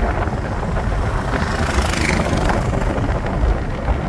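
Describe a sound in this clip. An auto rickshaw drives past close by.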